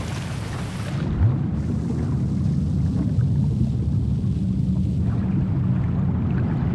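Underwater, a low rumbling muffled wash fills the sound.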